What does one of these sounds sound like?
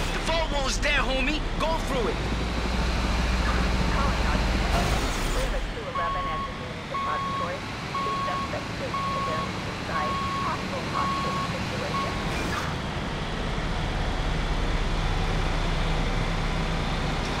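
A heavy vehicle's engine rumbles steadily.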